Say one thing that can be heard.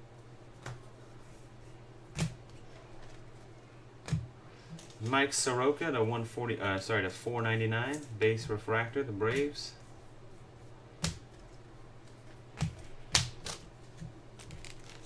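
Trading cards flick and snap against each other.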